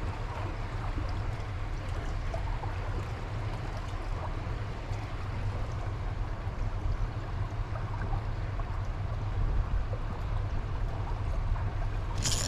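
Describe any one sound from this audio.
A fishing reel's handle whirs and clicks as it is turned.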